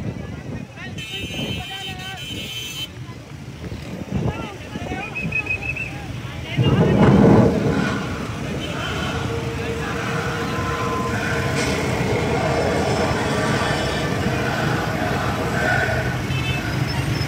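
A crowd of men shouts and chants outdoors.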